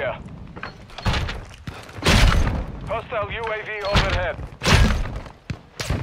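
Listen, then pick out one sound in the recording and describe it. A rifle fires loud, booming shots.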